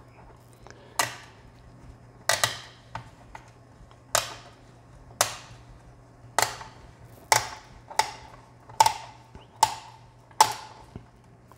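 Plastic parts snap into place with sharp clicks.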